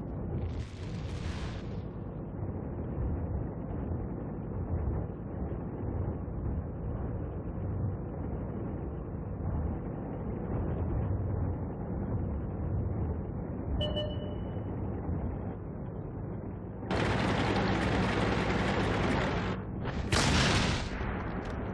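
A heavy tank engine rumbles steadily as the tank drives.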